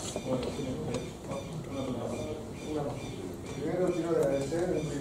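A man speaks to an audience in a room with a slight echo.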